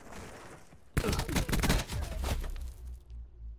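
A loud explosion bursts close by and rumbles away.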